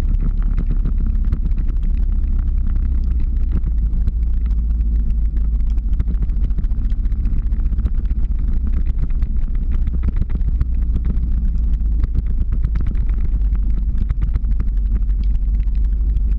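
Ski poles click against the road now and then.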